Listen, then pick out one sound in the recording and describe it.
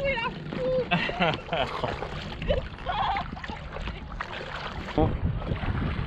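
Paddles splash in water.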